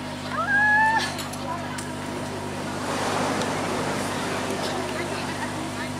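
A young woman reads out through a loudspeaker outdoors.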